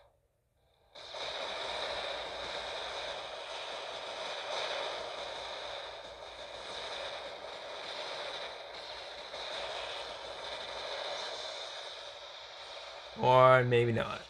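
Heavy guns fire in rapid bursts with crackling blasts.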